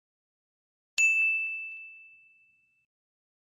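A small bell chimes once and rings out.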